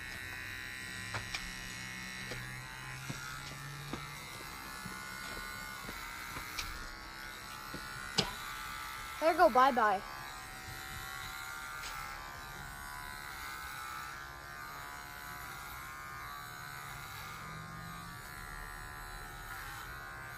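Hair clippers buzz steadily close by.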